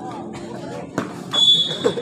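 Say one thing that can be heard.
A ball is kicked with a sharp thump.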